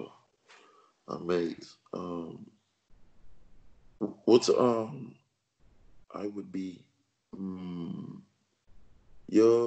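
A man speaks calmly and clearly into a microphone, in short phrases with pauses.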